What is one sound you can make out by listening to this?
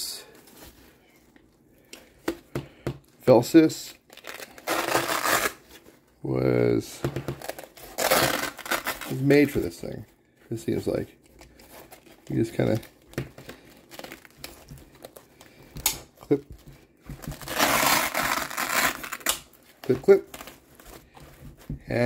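Stiff fabric rustles and scrapes as it is handled.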